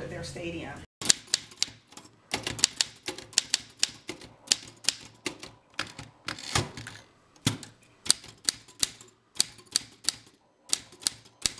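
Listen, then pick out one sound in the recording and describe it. Typewriter keys clack as letters strike the paper.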